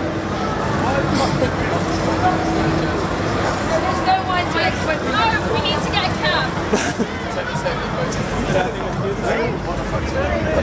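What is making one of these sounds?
Young men and women chatter nearby outdoors.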